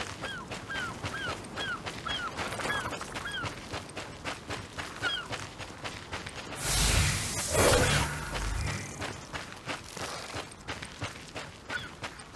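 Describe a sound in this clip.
Quick footsteps run over sand.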